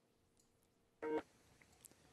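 A woman says a few words through an online call.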